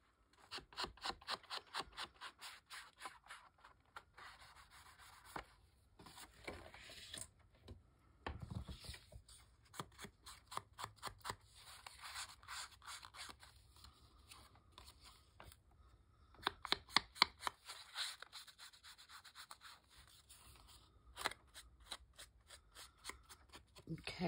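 An ink blending tool taps and scrubs rapidly against paper.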